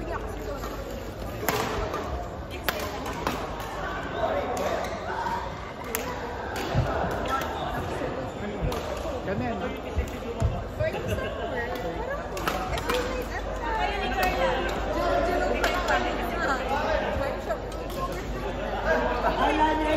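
Men and women call out and chatter in a large echoing hall.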